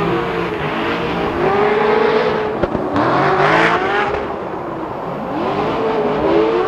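Car engines roar at high revs, rising and falling.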